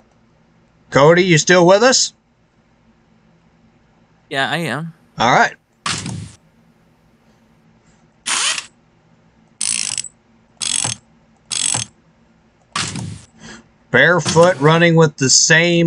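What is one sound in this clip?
Short electronic game sound effects play in bursts.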